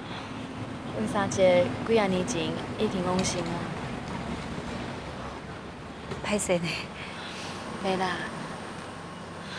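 A second young woman answers softly and close by.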